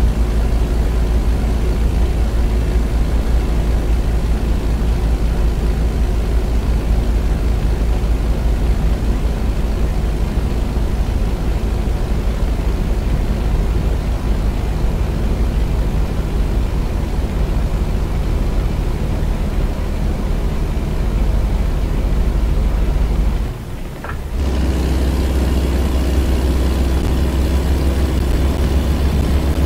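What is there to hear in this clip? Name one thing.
A truck engine drones steadily and loudly from inside the cab.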